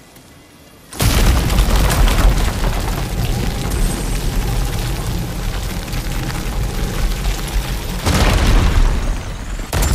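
A waterfall rushes loudly nearby.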